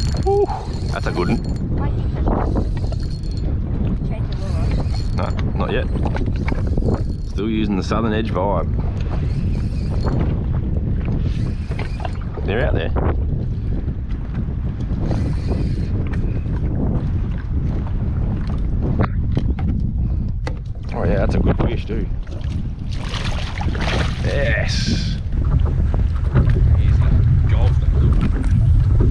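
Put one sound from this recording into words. Wind gusts steadily across open water, rumbling against the microphone.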